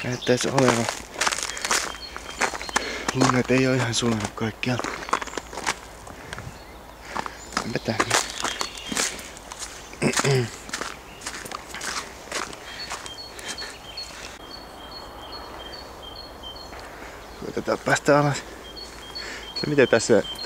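Footsteps crunch on snow and dry ground.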